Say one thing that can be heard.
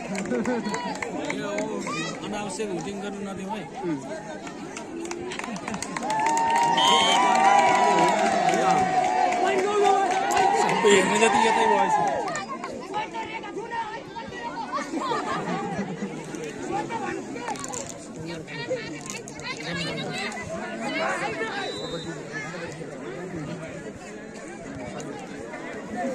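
A large outdoor crowd chatters and murmurs.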